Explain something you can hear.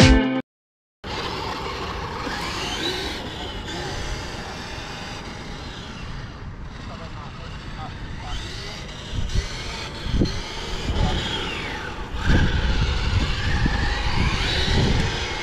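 Small tyres crunch and rumble over gravel.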